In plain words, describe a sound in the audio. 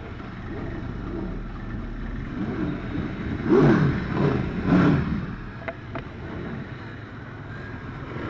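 An engine idles and rumbles nearby.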